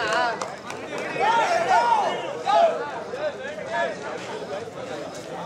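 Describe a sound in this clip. Young men shout and cheer loudly outdoors.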